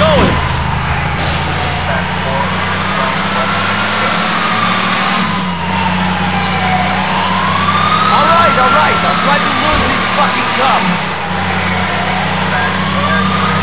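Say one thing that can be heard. A car engine hums steadily as it speeds along.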